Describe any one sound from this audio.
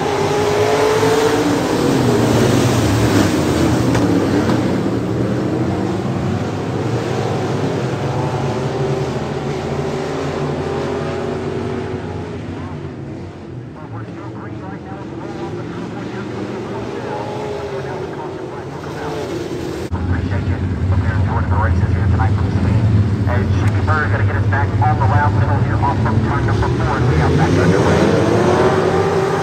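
Race car engines roar and whine around a dirt track.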